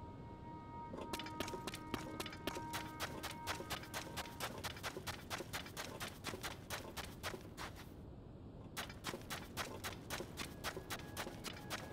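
Quick footsteps crunch through soft sand.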